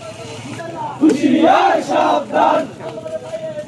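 A man shouts loudly close by.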